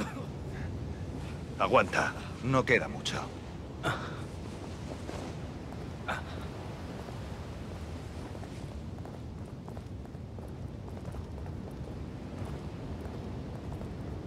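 Footsteps fall steadily on stone.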